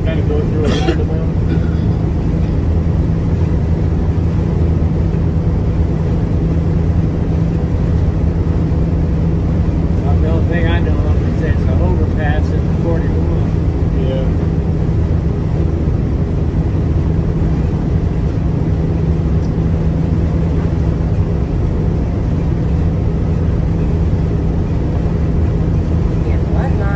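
Tyres roll on the road with a steady low rumble.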